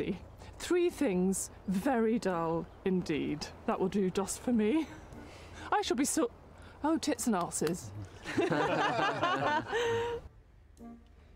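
A middle-aged woman talks with animation nearby.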